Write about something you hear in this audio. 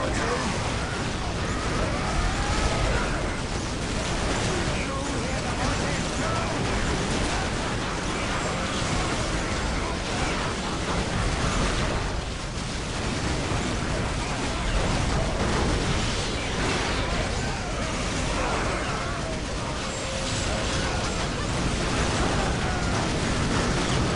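Rapid gunfire rattles in a battle.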